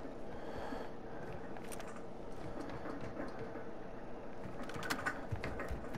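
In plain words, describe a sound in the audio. Hands clank on metal ladder rungs.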